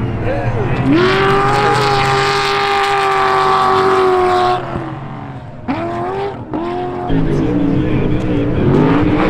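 A race truck engine roars loudly, revving up and down.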